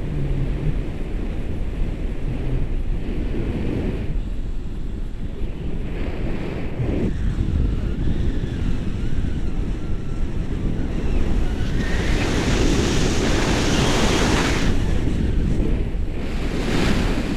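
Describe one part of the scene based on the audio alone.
Wind rushes and buffets the microphone during a paraglider flight.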